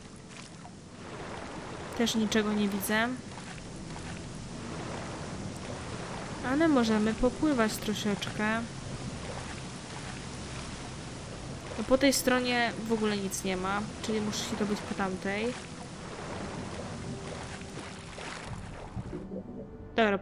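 Water splashes steadily as a swimmer strokes through it.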